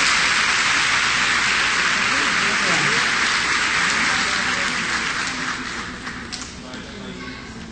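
A man speaks into a microphone in an echoing hall.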